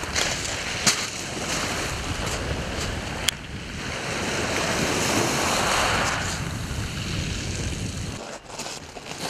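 Waves wash over pebbles on a shore.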